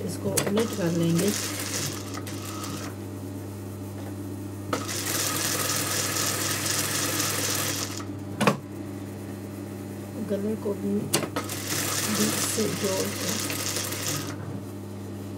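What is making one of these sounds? A sewing machine runs in bursts with a fast, rattling whir.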